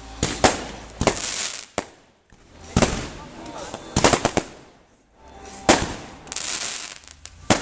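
Fireworks rockets whoosh and fizz as they shoot up.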